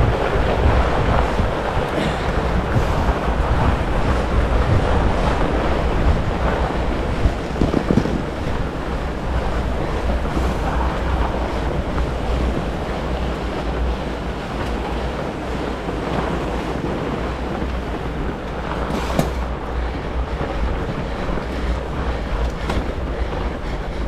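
Fat bike tyres crunch and hiss over packed snow.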